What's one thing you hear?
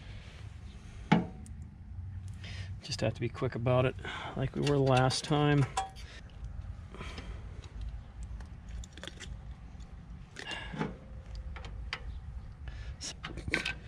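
Small metal parts click and tap as they are handled.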